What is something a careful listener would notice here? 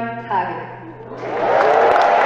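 A woman sings through loudspeakers in a large echoing hall.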